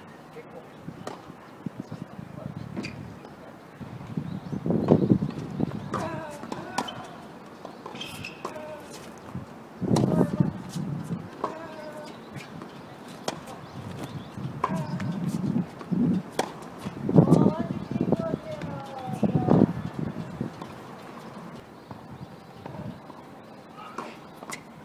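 A tennis ball is struck sharply by rackets in a rally.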